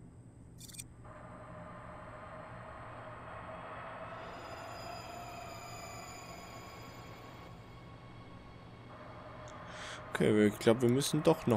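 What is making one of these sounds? A train hums steadily as it rolls along a track.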